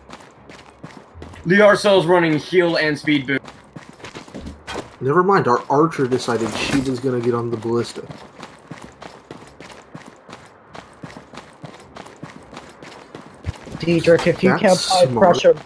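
Footsteps patter quickly on stone and wooden steps.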